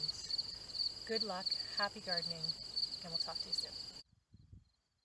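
A woman speaks calmly and cheerfully close by.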